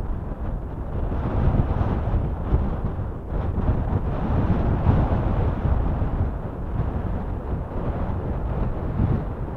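Small waves splash against rocks.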